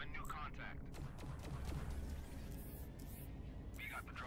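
Laser guns fire in quick zaps.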